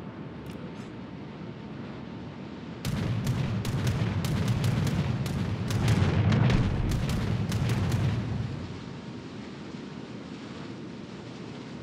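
Water rushes along a ship's hull.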